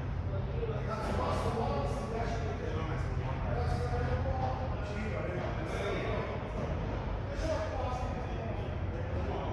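Men talk to each other across the court.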